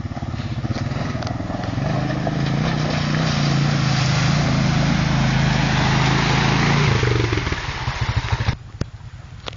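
A quad bike engine roars as it drives closer through water.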